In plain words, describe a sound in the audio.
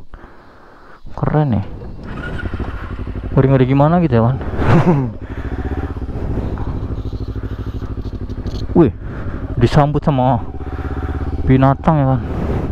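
A motorcycle engine idles with a steady rapid putter.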